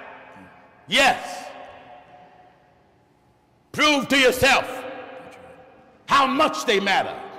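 A middle-aged man preaches loudly and forcefully into a microphone in short shouted bursts, his voice echoing in a large hall.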